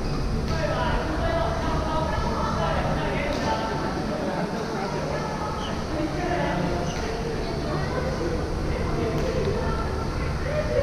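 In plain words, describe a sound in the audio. Men and women chatter in the distance.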